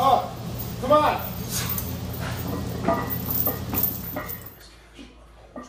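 Heavy chains clink and rattle.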